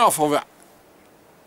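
A man speaks briefly, close by.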